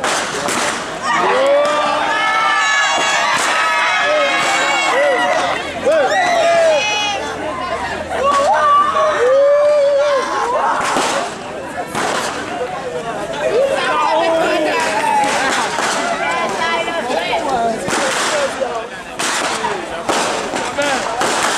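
A crowd of young men shouts and chants loudly outdoors.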